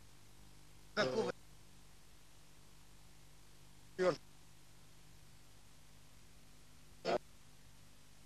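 A man speaks briefly in short bursts nearby.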